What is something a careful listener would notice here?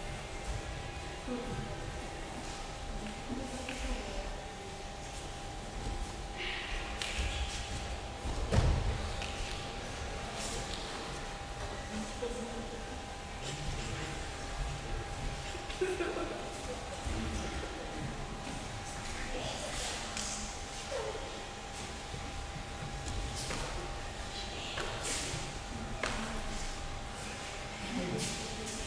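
Young men talk faintly in a large echoing hall.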